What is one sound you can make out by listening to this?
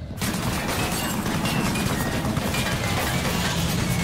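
Gunshots crack and bullets whizz past nearby.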